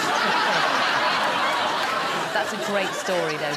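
A studio audience laughs loudly, then fades out.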